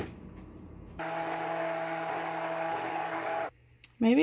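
A stick blender whirs with a steady hum, then stops.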